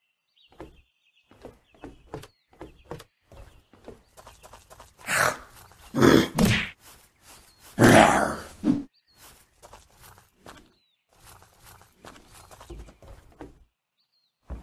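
Footsteps thud quickly across the ground and floor.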